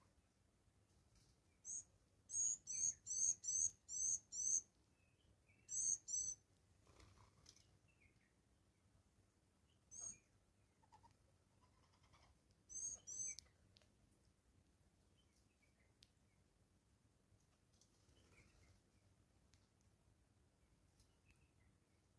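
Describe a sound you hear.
A small bird pecks at seeds on a wooden stump.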